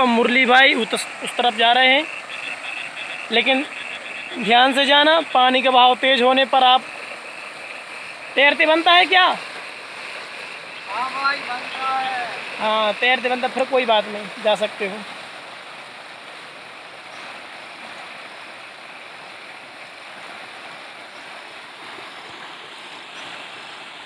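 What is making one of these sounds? Feet splash through shallow running water.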